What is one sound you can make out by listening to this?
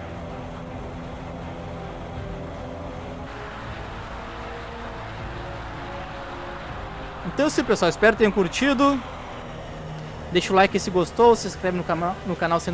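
Heavy rain hisses down.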